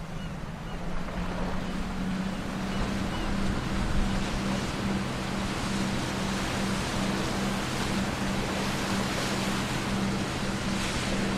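A small boat motor hums steadily.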